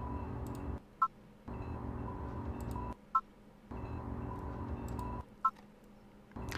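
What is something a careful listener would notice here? A short electronic menu beep sounds.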